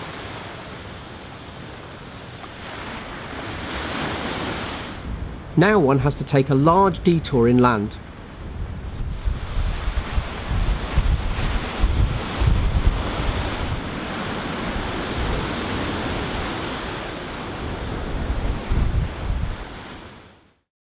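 Waves wash onto a shore below.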